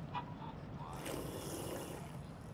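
A young woman slurps a drink through a straw.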